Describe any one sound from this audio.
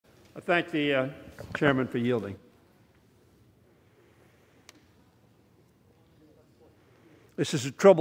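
An elderly man speaks formally into a microphone, with pauses.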